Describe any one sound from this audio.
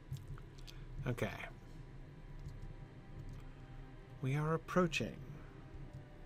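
A middle-aged man speaks briefly and calmly into a close microphone.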